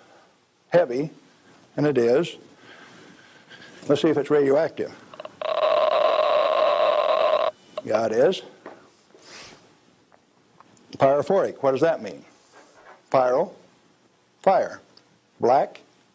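An elderly man speaks calmly in short phrases with pauses.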